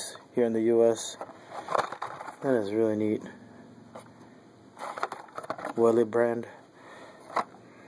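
A plastic blister pack crinkles and taps as a hand turns it over.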